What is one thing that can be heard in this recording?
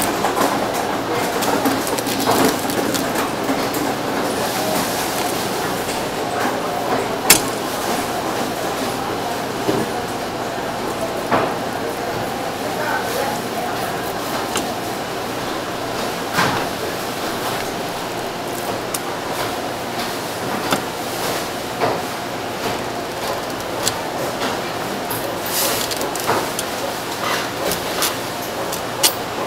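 A knife slices softly through raw fish.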